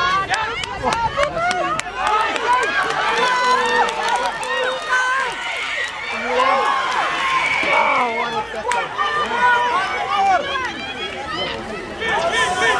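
A crowd of spectators, many of them children, shouts and cheers close by outdoors.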